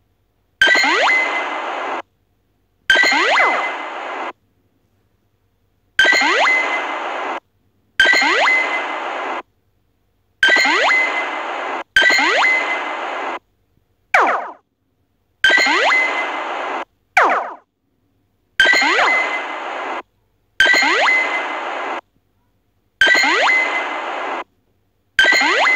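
A game plays a bright, sparkling healing chime over and over.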